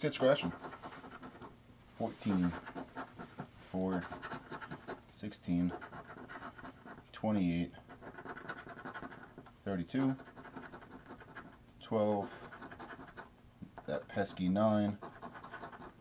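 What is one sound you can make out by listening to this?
A coin scratches across a card with a dry rasping.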